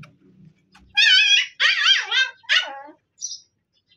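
Puppies whimper and yelp in a cage.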